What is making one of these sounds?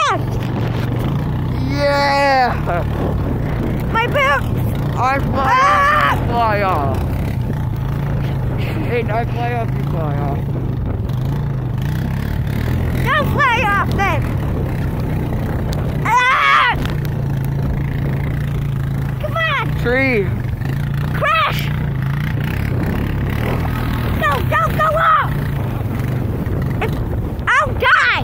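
A sled scrapes and rumbles steadily over snow.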